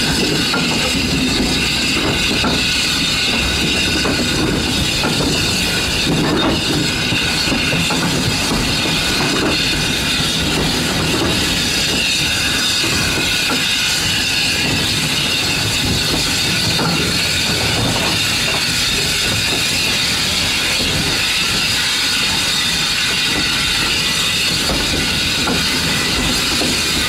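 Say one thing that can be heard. A steam locomotive rumbles and hisses steadily close by.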